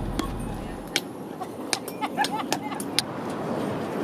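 A hammer knocks sharply on stones.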